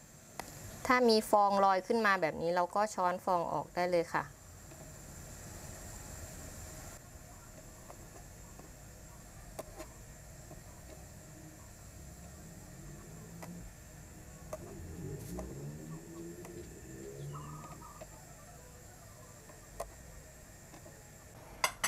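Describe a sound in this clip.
A pot of stew bubbles and simmers.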